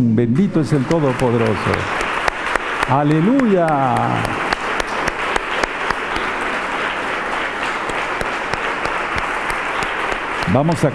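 A man claps his hands in a steady rhythm.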